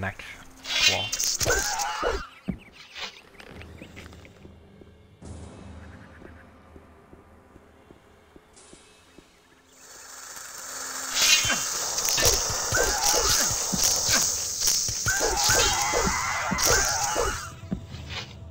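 A large insect creature shrieks and screeches.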